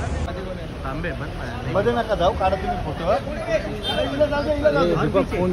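Men talk loudly nearby.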